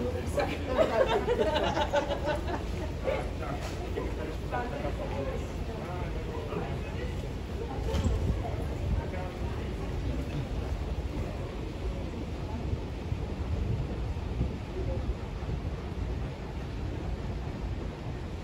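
Voices of many people murmur in a large, echoing underground passage.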